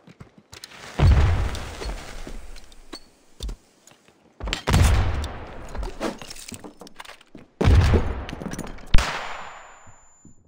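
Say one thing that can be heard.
Loud blasts boom and rumble, then fade.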